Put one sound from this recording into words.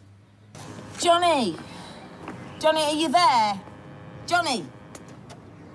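A young woman calls out in distress, close by, in high, wavering bursts.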